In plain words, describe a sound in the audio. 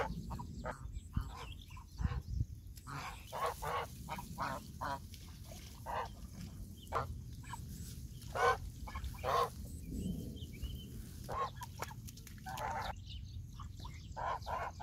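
Geese honk loudly and repeatedly nearby.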